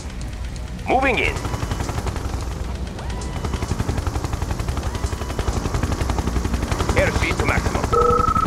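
A laser weapon fires with a sharp electric zap.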